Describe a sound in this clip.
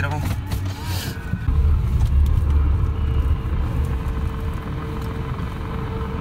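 A car engine rumbles low and steady as the car drives along.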